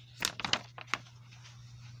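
A paper page is turned with a crisp rustle.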